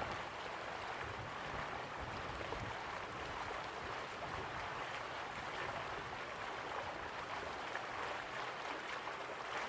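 Waterfalls rush and splash steadily.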